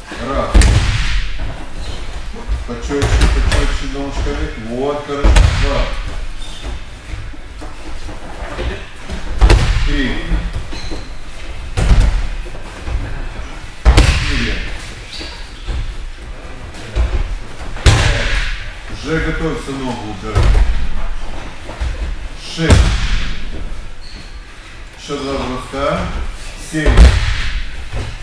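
Bodies thud heavily onto a padded mat.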